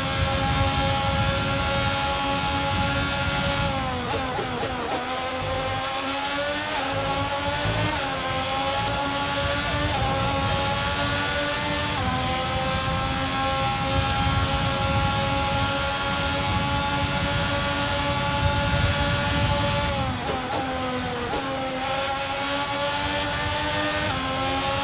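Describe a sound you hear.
A racing car engine screams at high revs, dropping in pitch as it brakes and rising again as it speeds up through the gears.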